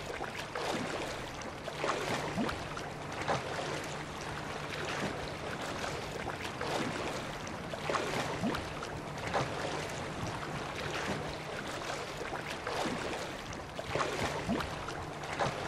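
Water splashes as a swimmer paddles with rhythmic strokes.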